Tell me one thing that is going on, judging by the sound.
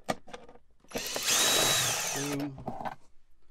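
A cordless drill whirs at high speed, then winds down.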